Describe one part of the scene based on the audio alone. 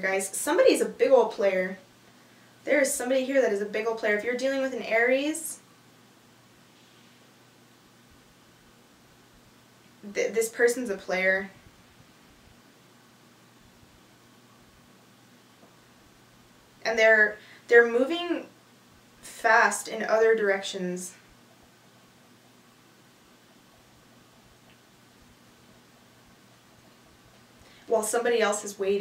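A young woman speaks calmly and softly close to a microphone, with pauses.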